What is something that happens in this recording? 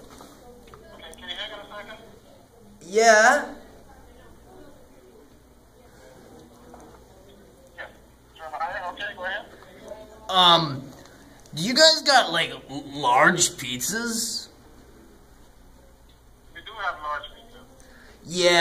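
A young man talks into a phone up close, cheerfully and with animation.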